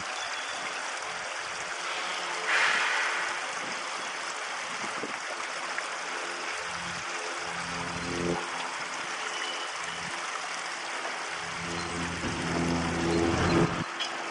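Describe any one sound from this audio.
A diesel locomotive rumbles slowly along the track, its engine throbbing low.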